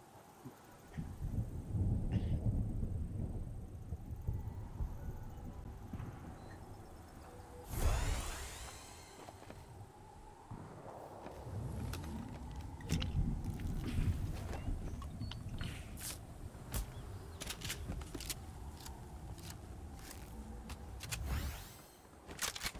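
Footsteps rustle through dense bushes.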